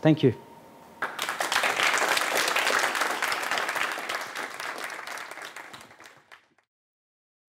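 An audience applauds and then fades out.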